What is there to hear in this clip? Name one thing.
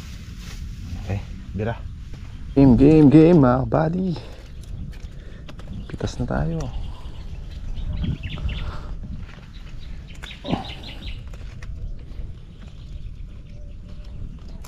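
A young man talks calmly, close to the microphone.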